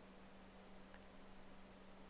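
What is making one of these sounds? A plastic rib is set down on a table with a light tap.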